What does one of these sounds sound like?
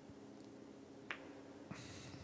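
A cue ball clicks against a red snooker ball.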